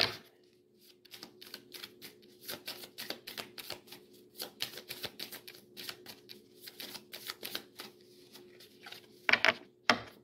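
Playing cards riffle and flick rapidly as they are shuffled.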